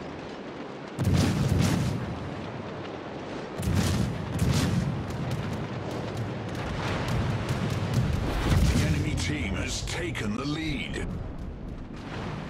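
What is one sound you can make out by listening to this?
Heavy naval guns fire in deep booming salvos.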